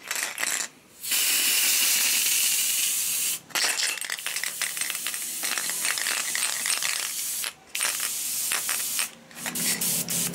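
An aerosol spray can hisses in bursts.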